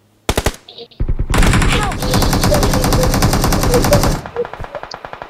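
Rapid gunfire rattles in a long burst.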